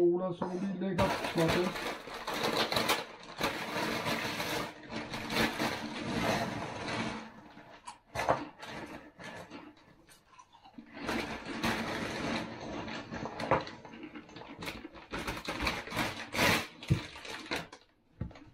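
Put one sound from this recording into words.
A plastic snack bag crinkles and rustles as a man handles it.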